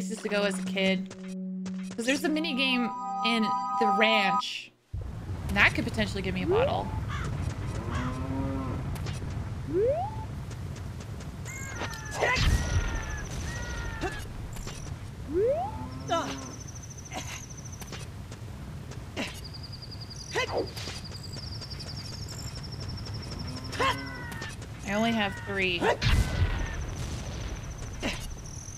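A young woman talks animatedly into a close microphone.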